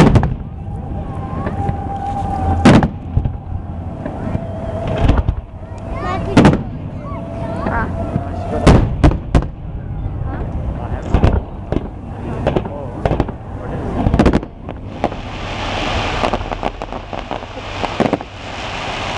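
Fireworks burst with loud booms and bangs.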